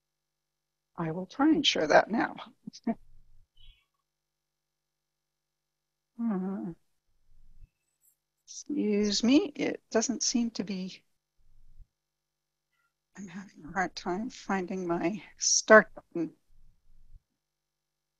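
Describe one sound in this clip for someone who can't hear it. A woman speaks calmly and slowly into a close microphone, with long pauses.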